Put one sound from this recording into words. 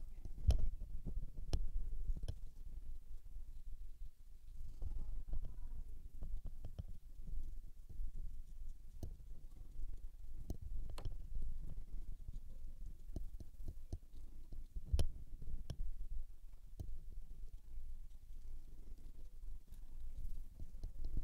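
A brush dabs and strokes softly on paper.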